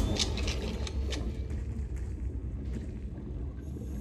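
A pistol is reloaded with a metallic click.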